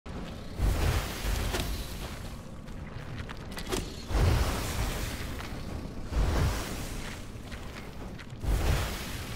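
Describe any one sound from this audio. Deep fiery blasts boom again and again.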